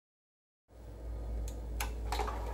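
A finger clicks a button on a CD player.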